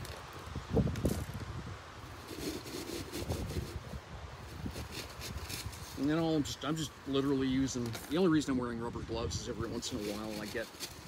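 Gloved hands rustle and press clay pebbles, which crunch and rattle in a pot.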